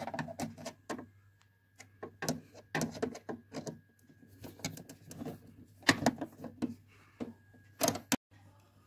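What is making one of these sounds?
A metal rod taps and scrapes against plastic parts inside a printer.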